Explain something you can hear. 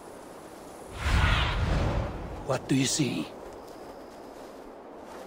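A large bird flaps its wings in a rush of air.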